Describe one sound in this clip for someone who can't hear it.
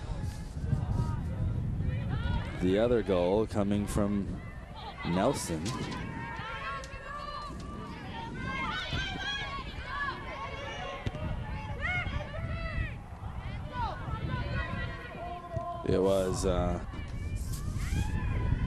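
Young women shout and call to each other outdoors on an open field.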